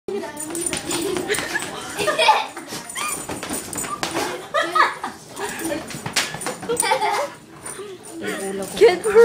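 A toddler babbles and squeals nearby.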